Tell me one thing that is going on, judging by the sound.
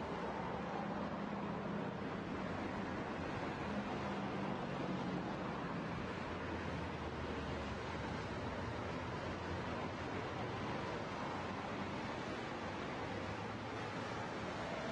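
Tyres roll on pavement with a steady rushing noise.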